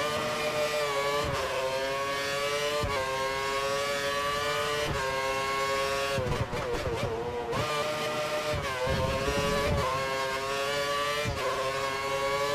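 A racing car engine screams at high revs, dropping in pitch with each gear change and braking before climbing again.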